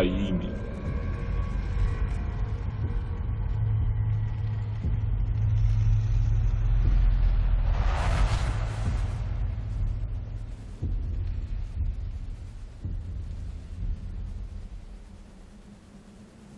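A deep, humming rumble swells and then fades away.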